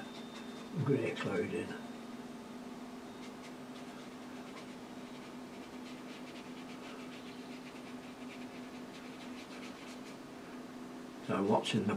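A brush dabs and brushes softly on paper.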